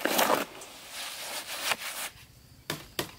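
A shovel scrapes through wet mortar.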